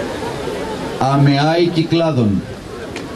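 A man chants loudly.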